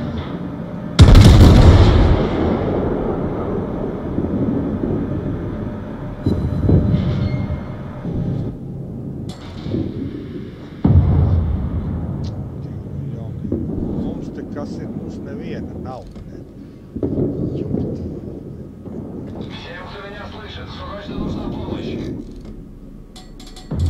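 Heavy naval guns fire in loud booming salvos that rumble and fade.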